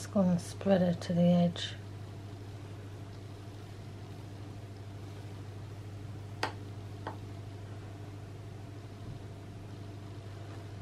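A spoon spreads thick batter with soft, wet scraping.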